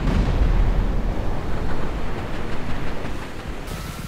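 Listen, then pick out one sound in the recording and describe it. Bullets splash into the water.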